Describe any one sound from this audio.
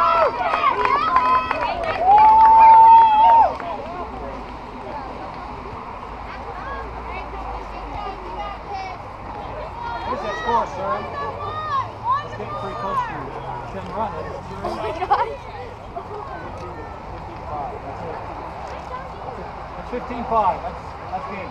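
Young women shout and cheer from close by and across an open field.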